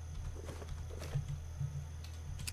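A small object drops onto the floor with a soft thud.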